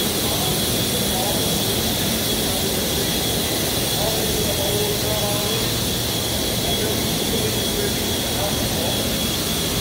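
Adult men and women chat quietly nearby.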